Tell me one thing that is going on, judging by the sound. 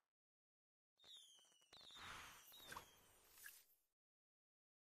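A bright celebratory sparkle sound plays.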